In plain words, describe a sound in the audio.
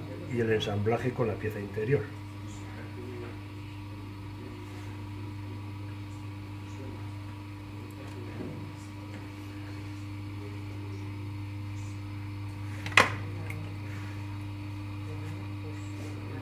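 A potter's wheel motor hums steadily.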